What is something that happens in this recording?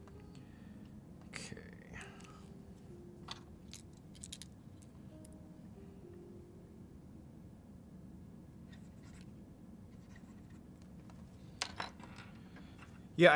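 Small objects click and tap on a table.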